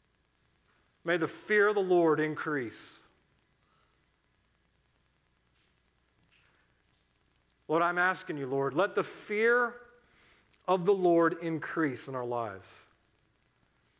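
A middle-aged man speaks calmly and slowly into a microphone, with long pauses.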